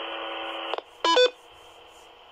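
A radio gives a short electronic chirp as the transmission ends.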